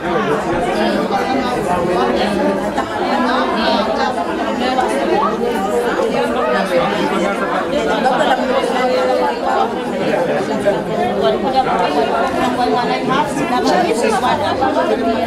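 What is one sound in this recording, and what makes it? Several women chatter in the background.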